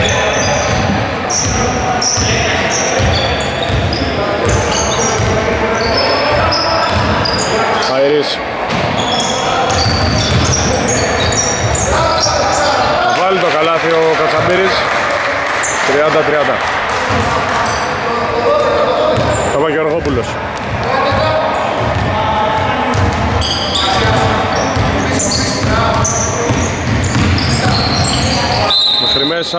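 Sneakers squeak on a wooden court in a large echoing hall.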